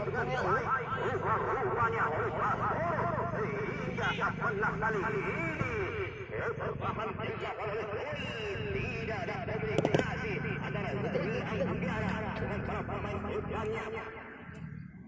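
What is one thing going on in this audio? A crowd of spectators shouts and chatters nearby outdoors.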